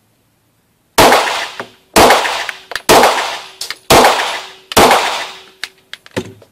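A handgun fires several loud shots that echo in an enclosed space.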